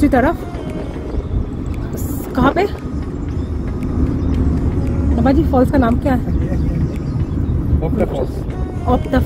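A young woman speaks close by in a calm, conversational voice.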